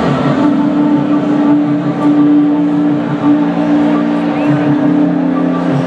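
A young woman sings through a loudspeaker, holding long notes.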